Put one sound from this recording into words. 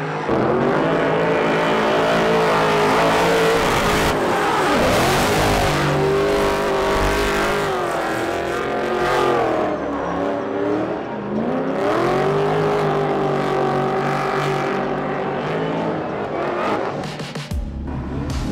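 A car engine revs hard and wails up and down as a car drifts.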